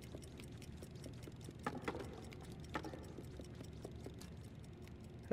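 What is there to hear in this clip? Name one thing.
Quick light footsteps patter on wooden floorboards.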